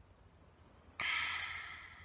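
A young woman exclaims with delight.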